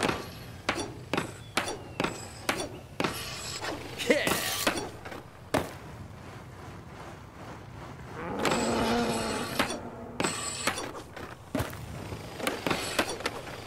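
A skateboard grinds along a metal rail.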